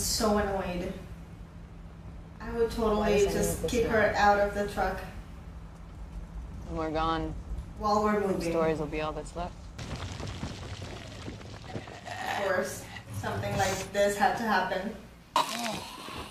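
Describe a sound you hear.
A young woman talks calmly and close to the microphone.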